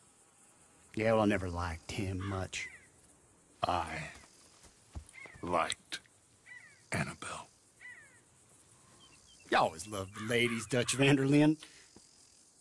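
An older man speaks in a gruff, gravelly voice.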